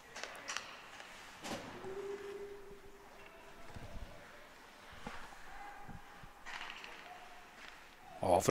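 Ice skates scrape and hiss on the ice.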